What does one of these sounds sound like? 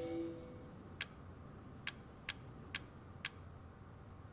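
Short menu clicks tick one after another.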